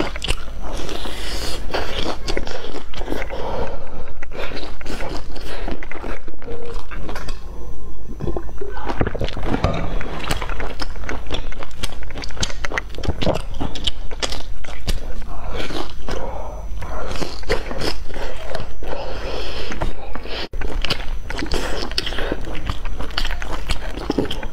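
A young woman chews food loudly and wetly close to a microphone.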